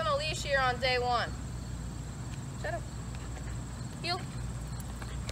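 A young woman calls out to a dog in a high, cheerful voice.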